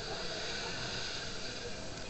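A jet ski splashes through the water.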